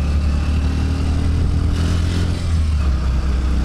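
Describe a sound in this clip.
A motorcycle passes by.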